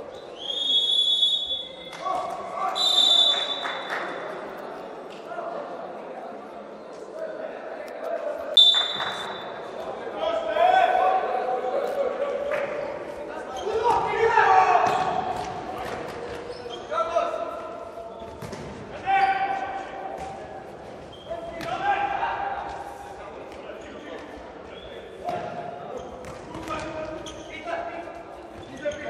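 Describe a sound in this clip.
A ball thuds as players kick it in an echoing indoor hall.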